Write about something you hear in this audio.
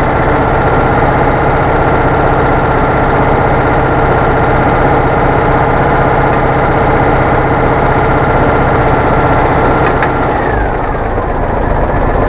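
A small engine idles loudly and steadily close by, then slows and changes tone.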